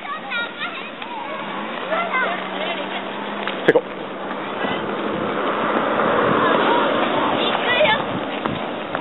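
Children shout and call out from a short distance outdoors.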